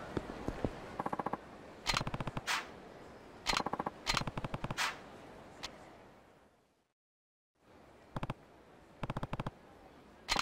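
Short electronic blips chatter in quick bursts.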